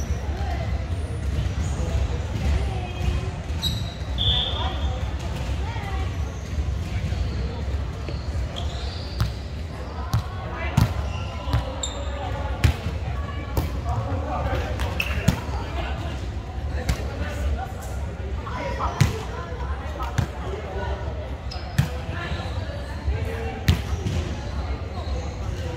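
Several young men and women call out to each other across the court.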